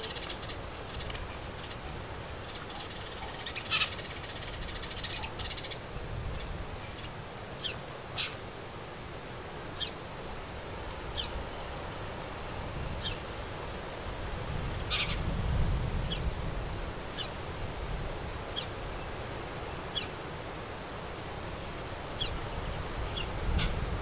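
Small birds chirp with short, sharp calls nearby.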